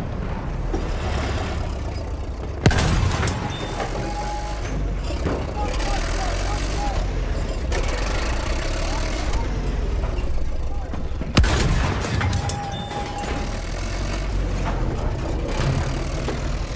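A tank engine rumbles low.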